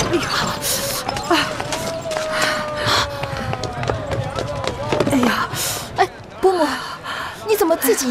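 An elderly woman groans in pain.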